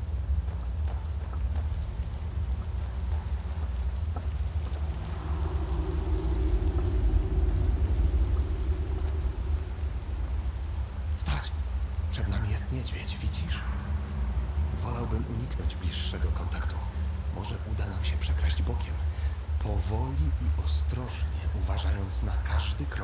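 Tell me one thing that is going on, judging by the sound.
Water rushes steadily in the background.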